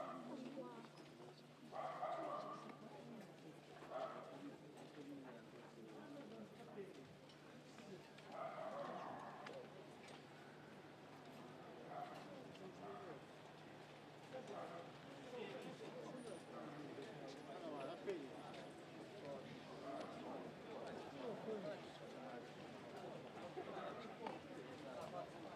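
Footsteps shuffle on pavement as a crowd walks by.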